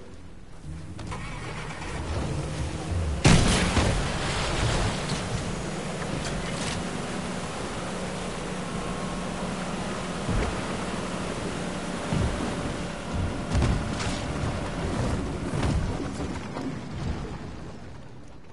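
A motorboat engine roars steadily as the boat speeds over water.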